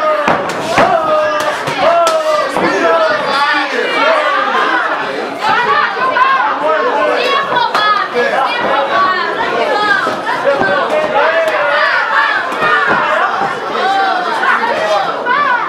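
Boxing gloves thud against each other as two fighters trade punches.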